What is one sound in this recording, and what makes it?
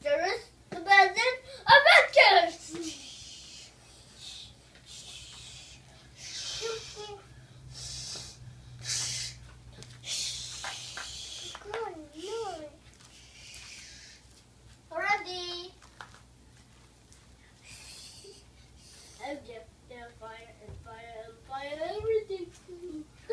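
Young children talk and squeal playfully nearby.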